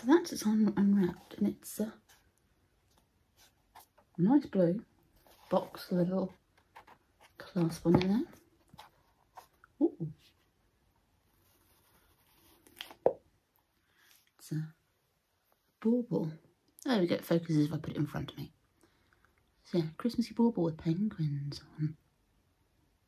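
A woman talks calmly and close by, in short bursts with pauses.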